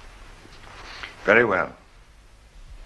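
A man speaks briefly and clearly nearby.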